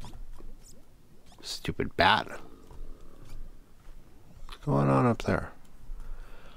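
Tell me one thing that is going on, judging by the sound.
Lava bubbles and pops softly.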